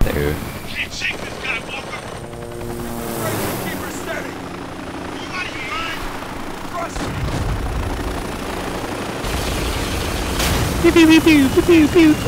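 A helicopter's rotor thumps as it flies close by.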